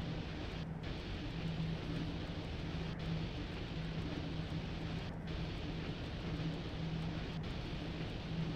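Train wheels rumble steadily over the rails.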